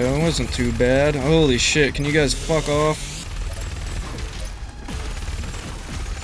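A heavy gun fires rapid blasts.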